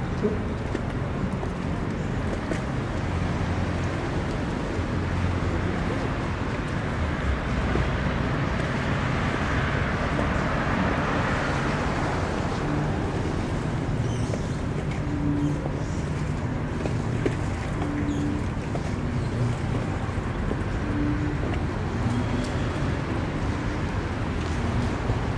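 Water laps and splashes nearby.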